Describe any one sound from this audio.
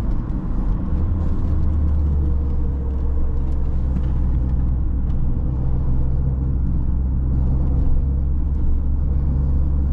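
A small car engine hums steadily from inside the cabin.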